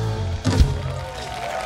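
A live band plays a final loud chord through loudspeakers outdoors.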